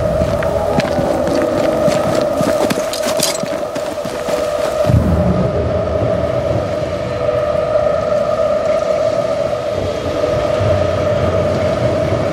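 Footsteps run quickly through grass and leaves.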